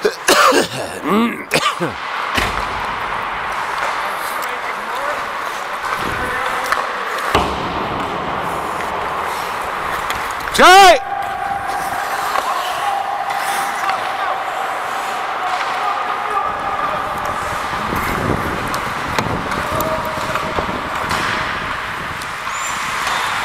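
Young men shout to each other across the rink.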